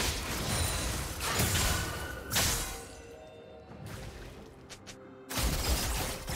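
Magic spells zap and crackle in quick bursts.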